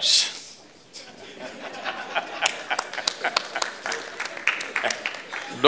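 An elderly man claps his hands.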